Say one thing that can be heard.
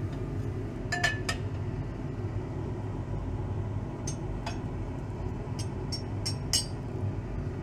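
Glassware clinks and knocks against a hard surface.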